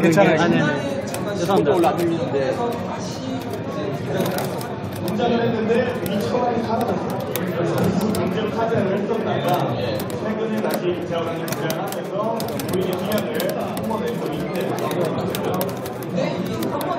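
A crowd of people chatters nearby in a busy, noisy hall.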